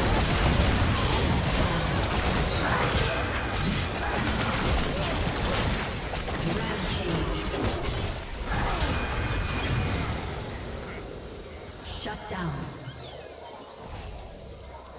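Spell effects and weapon hits burst and clash rapidly in a game fight.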